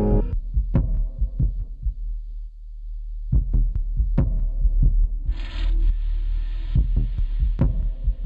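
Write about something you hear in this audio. Deep electronic drum beats thump with a low bass.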